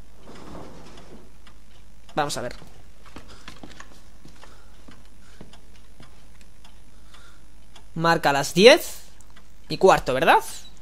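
A pendulum clock ticks steadily nearby.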